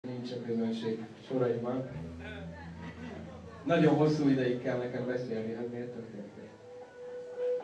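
A man sings into a microphone over loudspeakers.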